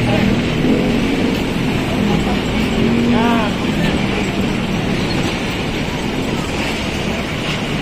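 A dump truck's engine runs.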